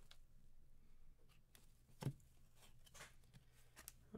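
Trading cards slide and flick against each other in the hands.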